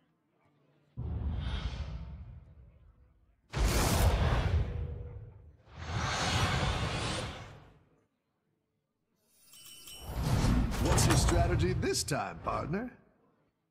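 Loud game sound effects whoosh and boom in bursts.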